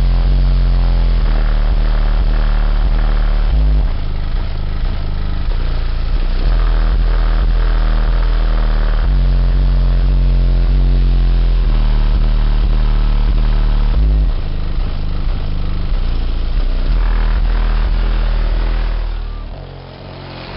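A subwoofer thumps loud, deep bass music that booms inside a car.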